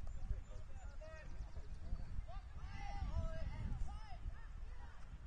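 Young players shout to each other far off across a field.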